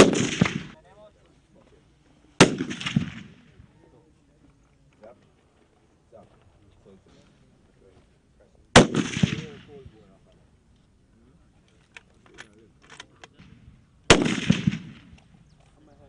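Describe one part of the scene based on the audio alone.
Rifle shots crack loudly outdoors and echo across open ground.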